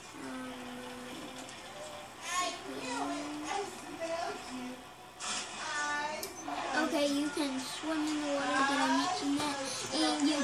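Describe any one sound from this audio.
Video game sounds play from a television's speakers.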